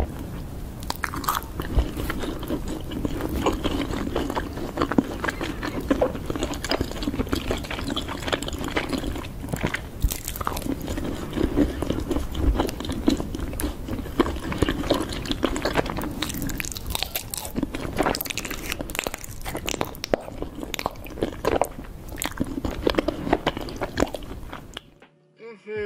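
Sticky honeycomb crackles and squelches between fingers, close to a microphone.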